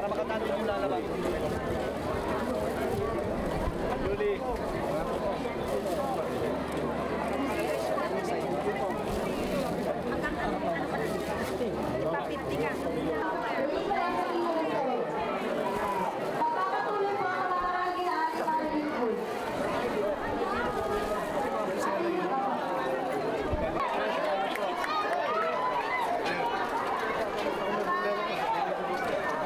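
A crowd of men and women chatters loudly and constantly nearby.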